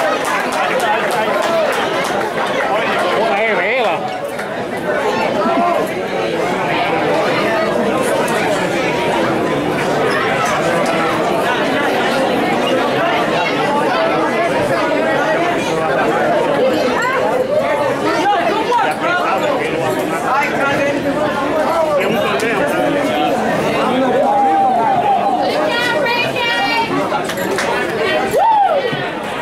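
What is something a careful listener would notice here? A crowd of men and women chatters throughout, in a large echoing hall.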